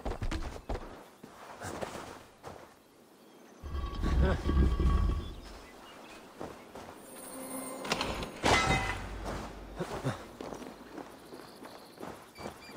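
Footsteps thud on wood and grass.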